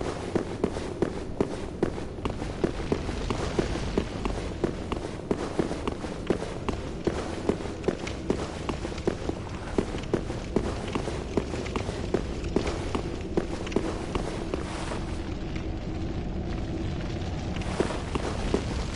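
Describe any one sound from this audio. Wind hums low in a large echoing space.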